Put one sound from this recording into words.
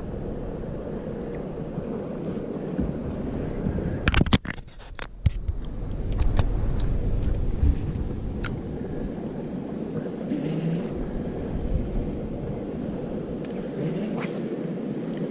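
A fishing reel clicks as a man reels in line.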